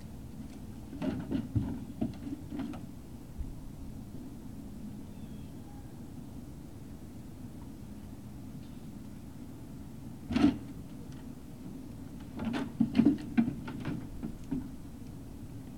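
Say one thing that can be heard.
A dog barks a few times at a distance.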